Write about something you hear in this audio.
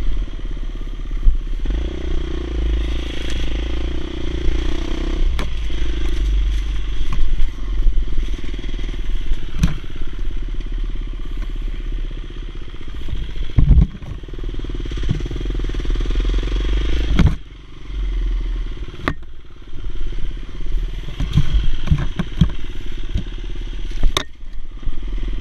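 A dirt bike engine revs and roars up and down.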